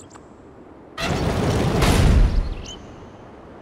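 A heavy stone gate grinds and rumbles open.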